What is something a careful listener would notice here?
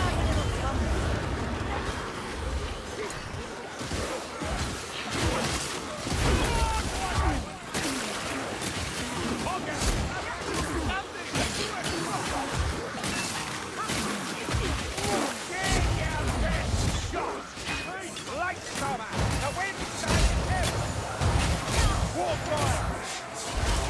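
Creatures snarl and shriek as they attack.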